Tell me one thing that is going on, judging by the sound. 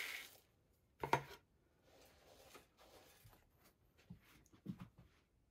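A hand rakes through dry pellets with a soft rustle.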